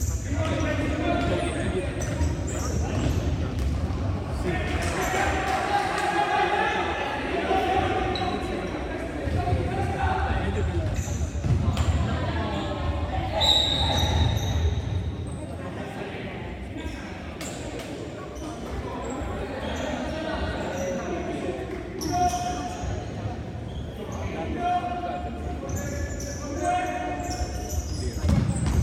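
Shoes squeak sharply on a polished floor.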